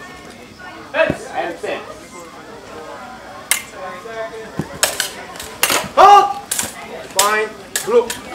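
Practice swords clash and knock together sharply.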